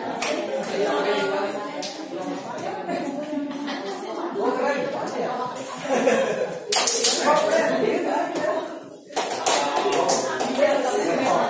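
Several women chatter in the background.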